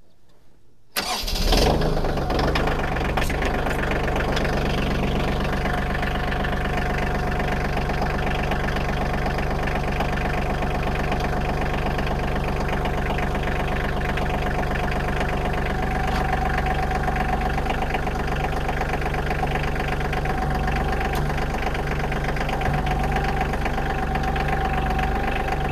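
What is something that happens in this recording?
A tractor's diesel engine starts up and runs with a steady loud rumble.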